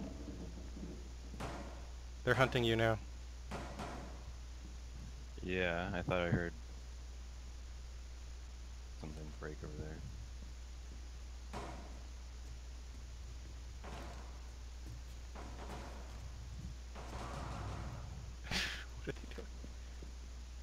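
Footsteps thud on wooden floors and stairs.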